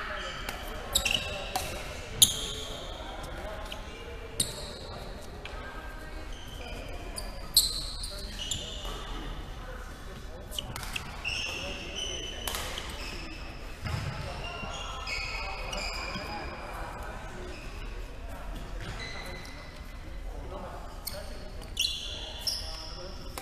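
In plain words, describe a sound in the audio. A ball thuds on a wooden floor and echoes through a large hall.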